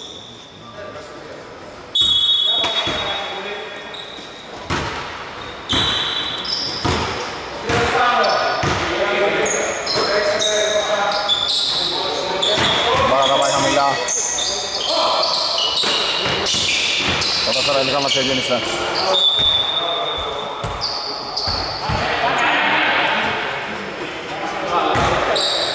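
A basketball bounces on the hard floor, echoing in a large hall.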